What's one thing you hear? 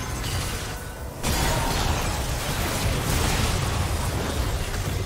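Game characters clash with spell blasts and sword hits in a busy battle.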